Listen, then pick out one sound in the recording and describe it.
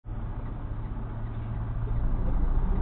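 A heavy truck's diesel engine idles.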